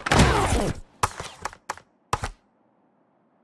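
Short menu clicks sound in quick succession.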